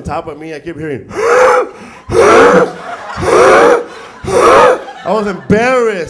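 A young man sings loudly and dramatically into a microphone.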